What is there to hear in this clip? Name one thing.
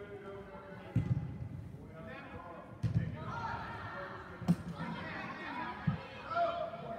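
A football thuds as it is kicked.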